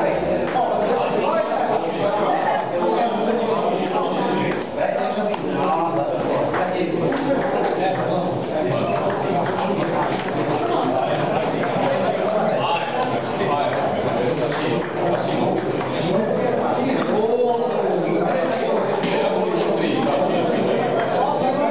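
A crowd of men chatter loudly nearby in an echoing hall.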